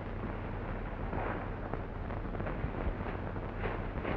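A pitchfork rustles through straw.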